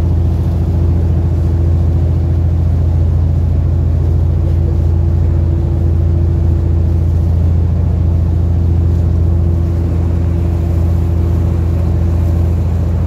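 A boat motor drones steadily throughout.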